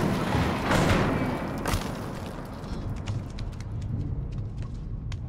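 Loose rubble crumbles and clatters.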